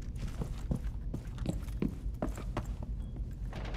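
Footsteps thud quickly on hard stairs.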